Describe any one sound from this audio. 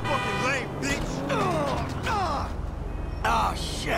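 A car strikes a man with a thud.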